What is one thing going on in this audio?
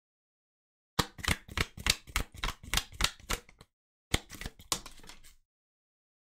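A deck of cards is shuffled by hand with quick riffling clicks.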